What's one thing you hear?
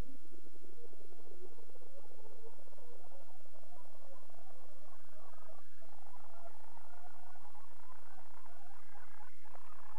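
A reel-to-reel tape machine whirs as it winds tape at high speed, its pitch slowly rising.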